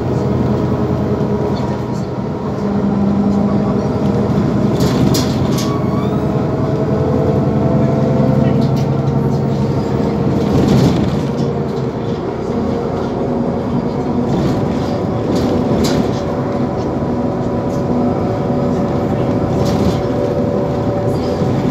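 A bus engine hums and drones steadily from inside as it drives.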